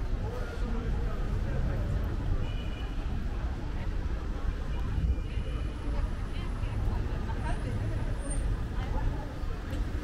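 People talk in the distance outdoors.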